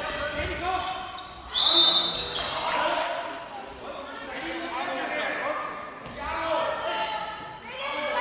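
Young female players shout and call out to each other in an echoing hall.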